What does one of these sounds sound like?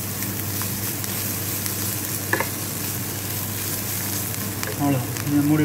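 Vegetables sizzle in a hot pan.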